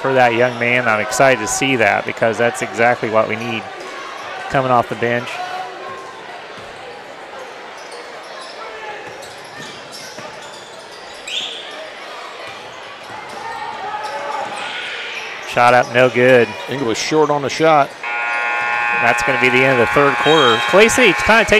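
A crowd cheers and murmurs in a large echoing gym.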